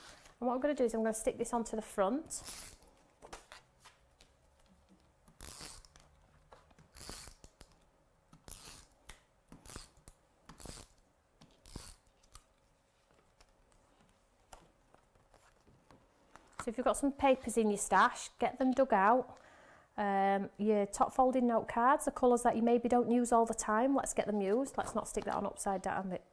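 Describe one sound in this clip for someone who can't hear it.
Paper rustles and slides.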